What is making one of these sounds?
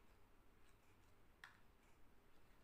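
A spoon scrapes and stirs a paste in a bowl.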